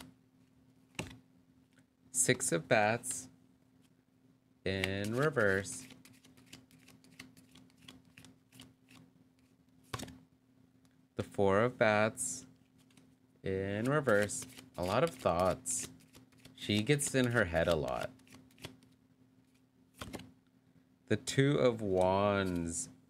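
Playing cards are laid down with soft taps on a cloth mat.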